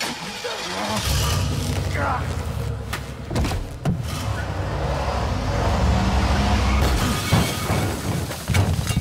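A van engine rumbles and revs nearby.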